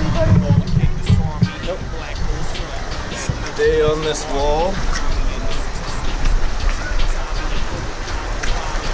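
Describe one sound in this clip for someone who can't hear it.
A shallow creek trickles and splashes over rocks.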